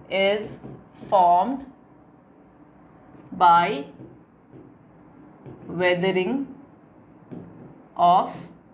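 A woman speaks slowly and clearly, as if teaching, close to a microphone.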